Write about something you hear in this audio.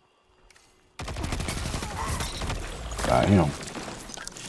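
A gun fires in rapid shots.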